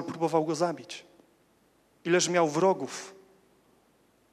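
A young man speaks slowly into a microphone, heard over a loudspeaker.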